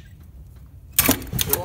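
A ratchet wrench clicks on a bolt.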